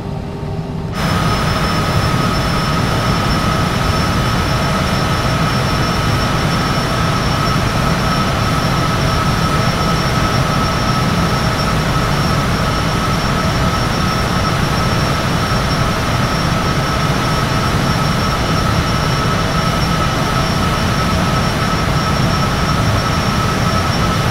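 Jet engines roar loudly with a steady high whine.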